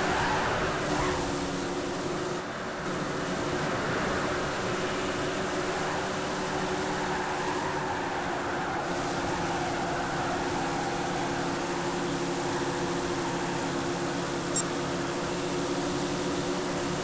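A stock car engine drones at full throttle in a racing game.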